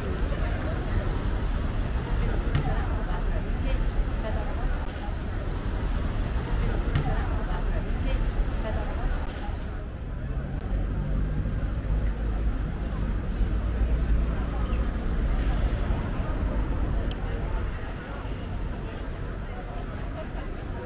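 Footsteps shuffle on a paved street.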